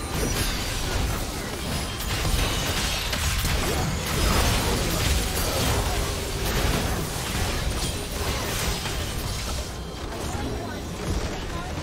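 Video game spell effects and weapon hits clash in a busy battle.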